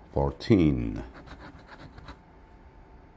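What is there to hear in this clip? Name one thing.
A coin scratches a card in short scraping strokes.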